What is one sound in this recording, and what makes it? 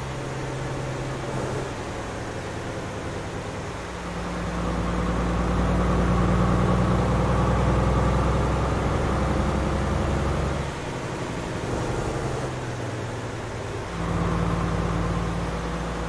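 A heavy truck engine rumbles steadily, rising and falling as it drives.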